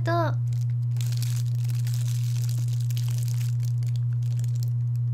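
A young woman bites into crispy bread with a crunch.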